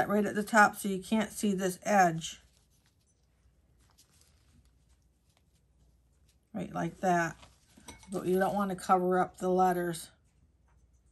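An older woman talks calmly close by.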